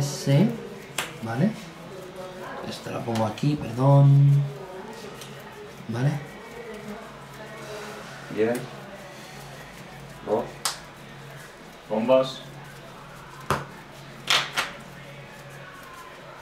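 Playing cards slide and tap against one another as they are shuffled.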